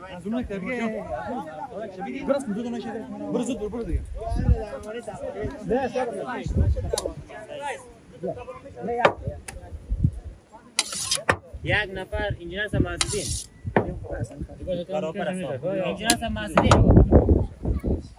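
Several young men talk with animation close by, outdoors.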